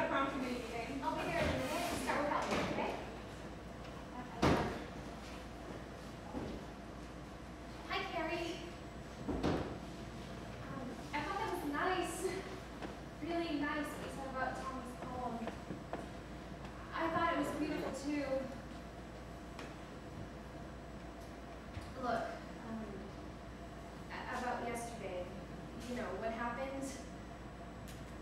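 Young women speak with feeling at a distance.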